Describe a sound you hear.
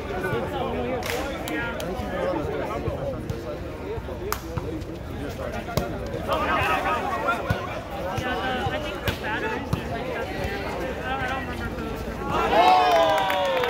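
A volleyball is struck with a hand.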